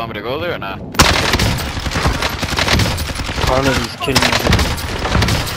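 A rifle fires rapid shots in loud bursts.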